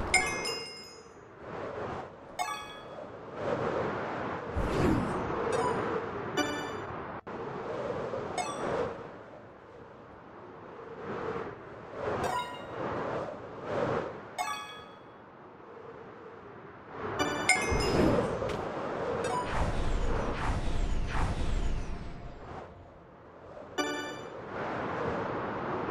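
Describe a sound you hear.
Wind rushes loudly past in surging gusts.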